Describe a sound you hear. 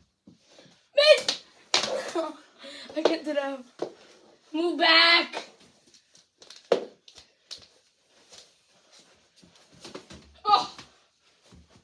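Boys talk and shout excitedly close by.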